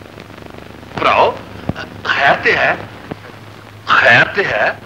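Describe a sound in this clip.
A man speaks in a raised, dramatic voice.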